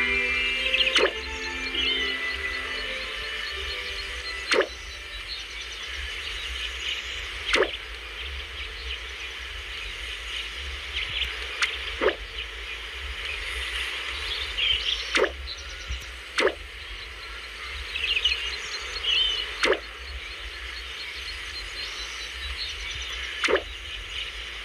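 A game's interface gives short clicks each time its text moves on.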